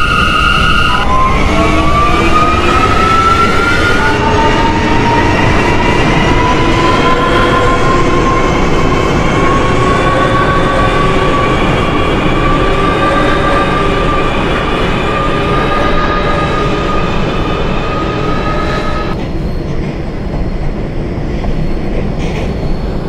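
A subway train rumbles steadily along the tracks in a tunnel.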